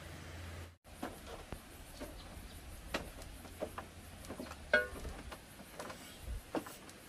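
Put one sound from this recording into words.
A wooden pole knocks and thumps repeatedly.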